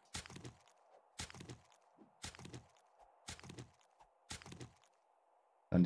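A pickaxe strikes earth and rock in a steady rhythm.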